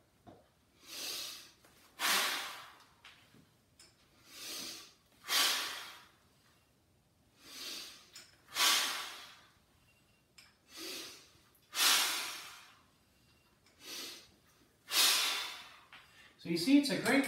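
A man exhales sharply with each exercise repetition.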